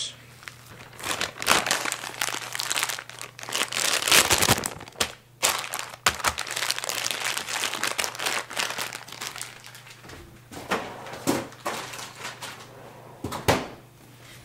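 A plastic bag crinkles and rustles as hands press it.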